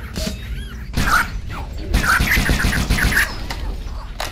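Energy weapons fire in quick zapping bursts.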